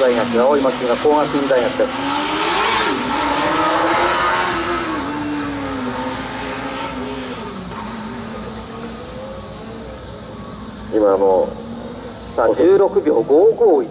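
A car engine revs and drops in the distance.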